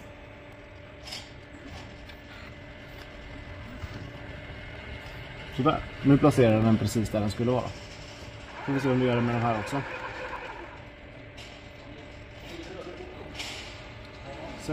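A robot arm whirs softly as it moves.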